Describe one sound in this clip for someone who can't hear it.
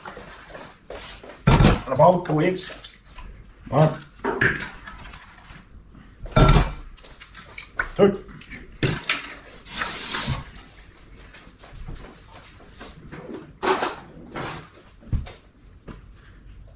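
Dishes and utensils clink and clatter.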